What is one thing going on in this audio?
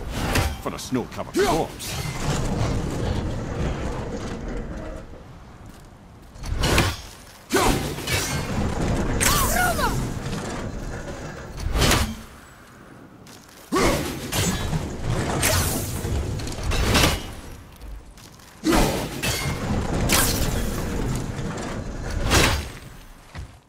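An axe thuds into a large frozen mechanism.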